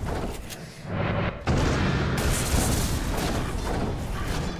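Weapons clash and spells burst in a noisy battle.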